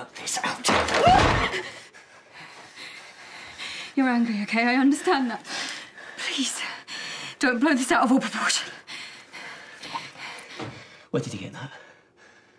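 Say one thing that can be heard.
A woman gasps and speaks in a frightened, breathless voice close by.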